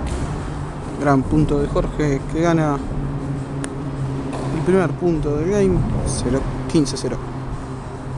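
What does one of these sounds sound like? A man talks with animation in a large echoing hall.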